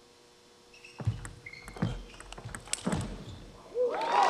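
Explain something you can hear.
Table tennis paddles hit a ball back and forth.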